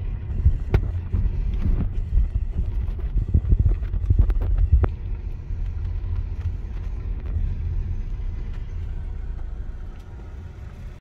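Tyres roll slowly over a rough road.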